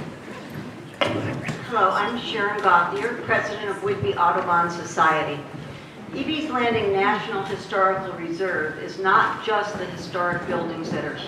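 An older woman speaks calmly into a microphone, heard through a loudspeaker in an echoing room.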